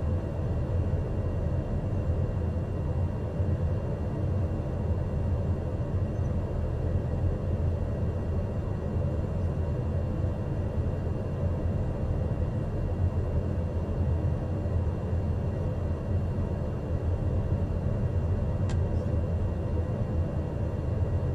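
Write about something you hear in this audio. A small aircraft's engine drones steadily inside the cockpit while taxiing.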